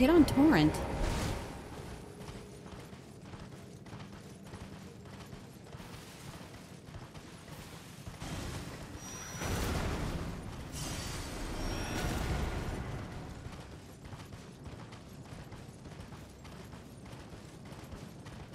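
A horse gallops with quick hoofbeats on snow.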